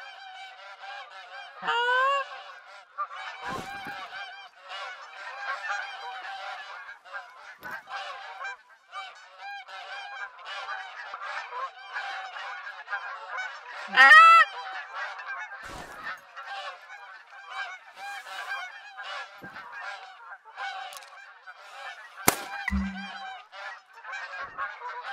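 A flock of geese honks.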